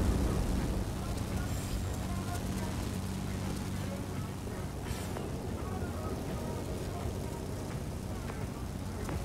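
A propeller aircraft engine drones steadily and loudly.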